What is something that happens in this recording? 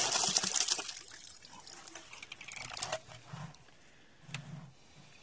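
Drops of water patter on a pond's surface.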